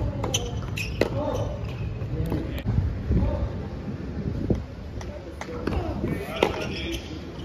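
A tennis ball is struck sharply with a racket.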